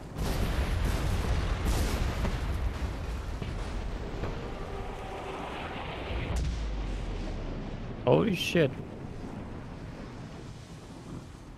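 Fire crackles and roars after an explosion.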